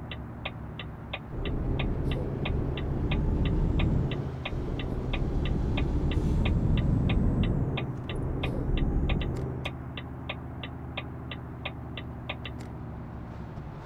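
A turn signal ticks at a steady, quick pace.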